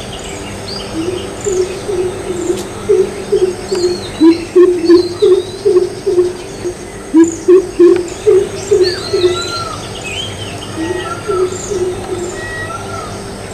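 A bird calls with deep, quick, repeated hoots.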